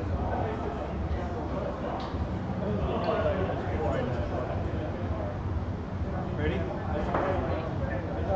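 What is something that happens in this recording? Foosball rods clack and rattle as players spin and slide them.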